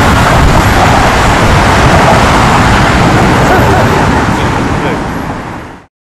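Wind buffets loudly outdoors.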